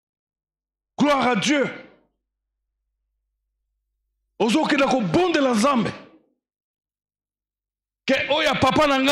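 A man speaks with animation into a microphone over loudspeakers, in bursts with pauses.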